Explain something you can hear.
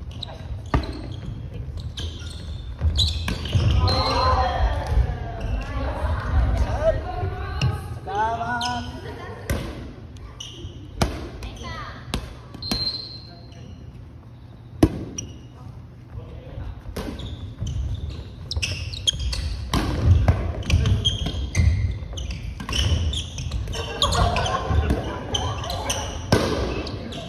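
Players' shoes squeak on the wooden floor.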